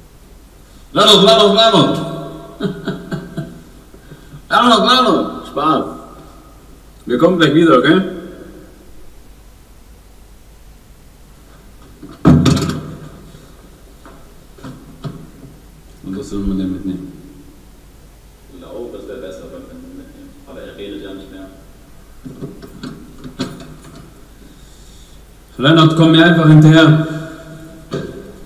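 A young man laughs and talks with animation close to a microphone.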